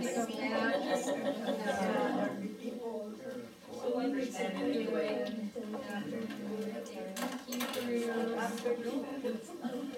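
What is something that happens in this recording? A middle-aged woman reads aloud calmly.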